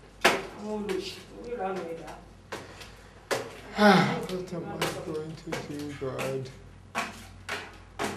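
A young man knocks on a metal gate.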